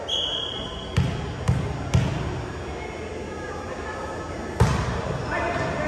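A volleyball thumps loudly as it is bounced and struck, echoing in a large hall.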